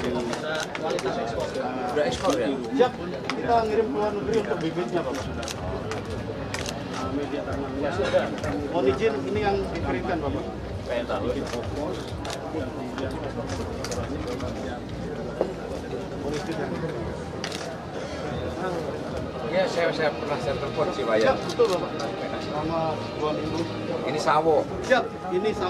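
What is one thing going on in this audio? Men talk and chatter nearby.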